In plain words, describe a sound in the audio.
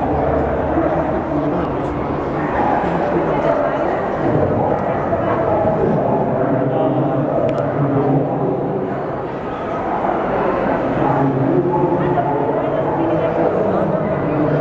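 Many people chatter steadily in a large, echoing hall.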